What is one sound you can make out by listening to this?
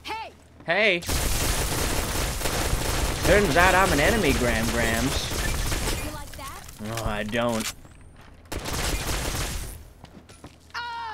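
An energy weapon fires with loud crackling zaps.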